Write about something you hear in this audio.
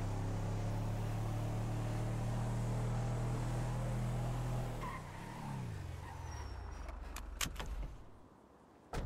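A truck engine rumbles loudly as it drives, then slows down and stops.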